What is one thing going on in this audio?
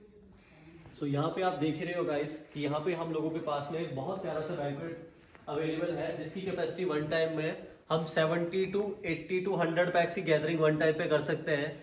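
A young man speaks with animation close to the microphone.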